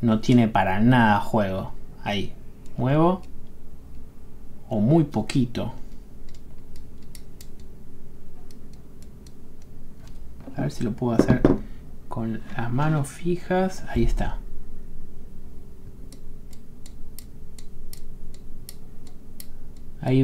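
Small metal parts of a multitool click and tick softly.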